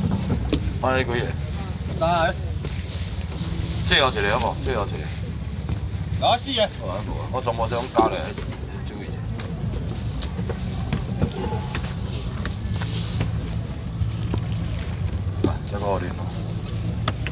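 A man calls out loudly to passers-by, close by.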